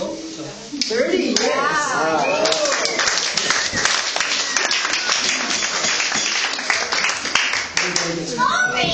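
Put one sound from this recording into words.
A crowd applauds with claps.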